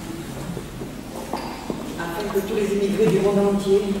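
A woman speaks calmly into a microphone over loudspeakers.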